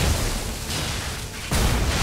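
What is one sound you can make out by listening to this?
Electricity crackles sharply.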